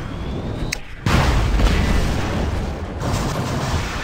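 Loud weapon blasts boom and rumble.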